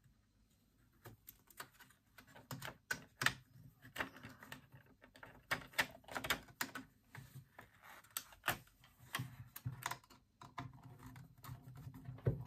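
Hard plastic parts click and knock as they are handled close by.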